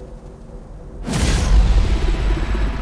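A loud explosion bursts and rumbles.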